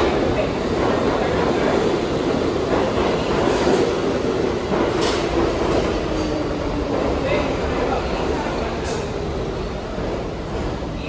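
Metal wheels squeal and clack on the rails.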